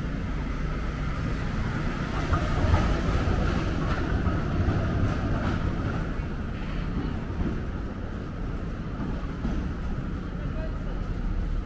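A tram rumbles past close by.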